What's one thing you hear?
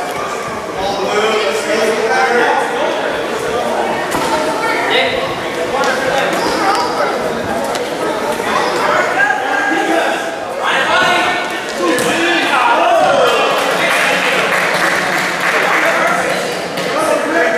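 Children shout and call out across a large echoing hall.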